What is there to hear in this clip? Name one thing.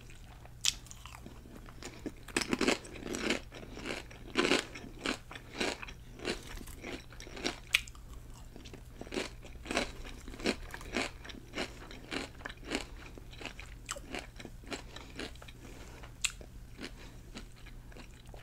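Crunchy chips crackle as a woman bites into them.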